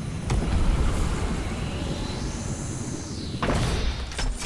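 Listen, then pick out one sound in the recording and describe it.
A game character glides down through the air with rushing wind.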